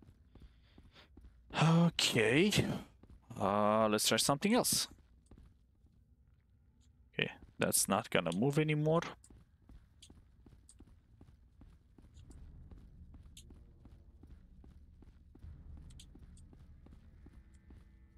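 Footsteps patter quickly on a stone floor.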